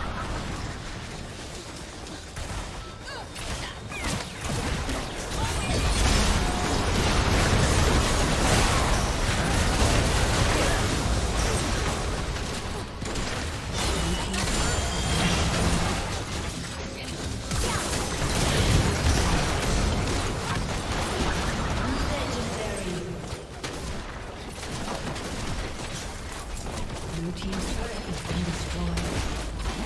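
Spell blasts and hits clash in a fast battle.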